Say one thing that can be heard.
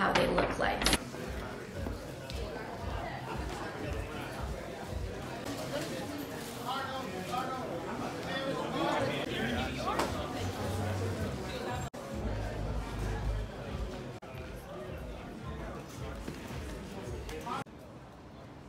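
A crowd murmurs and chatters in a busy room.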